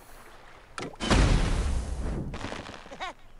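A cartoon explosion booms and rumbles away.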